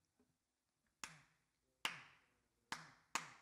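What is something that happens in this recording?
Hand drums are struck a few times.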